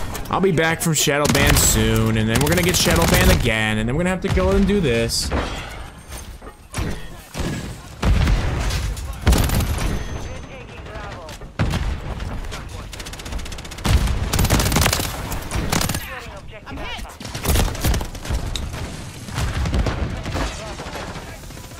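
Gunfire cracks in rapid bursts.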